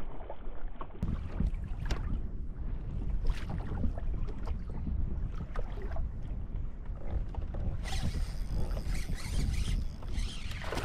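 Wind buffets outdoors on open water.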